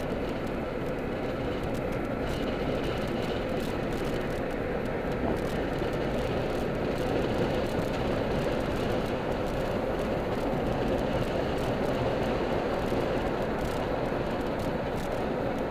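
A car's engine and tyres hum on asphalt, heard from inside the car.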